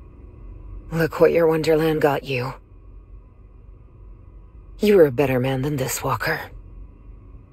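A woman speaks quietly and bitterly, close by.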